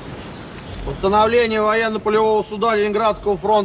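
A man reads out loudly in the open air.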